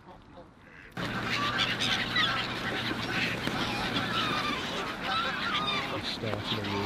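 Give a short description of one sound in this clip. Many gulls cry and squawk noisily.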